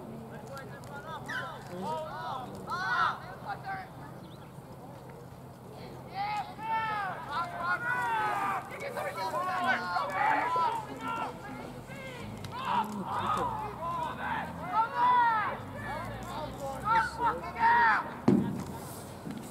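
Young female players shout and call to each other across an open field, heard from a distance.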